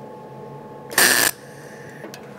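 A welding torch crackles briefly as it makes a short tack weld.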